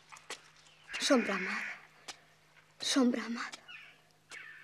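A young woman speaks close by.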